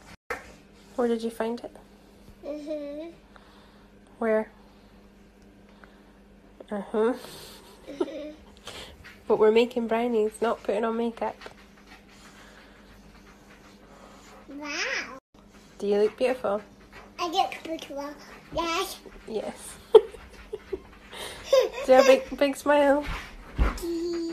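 A toddler girl talks and babbles close by.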